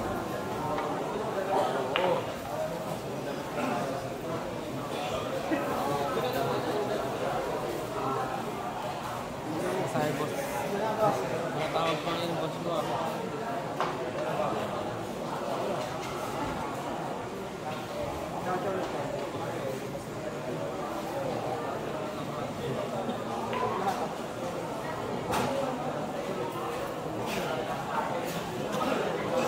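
Men chat nearby.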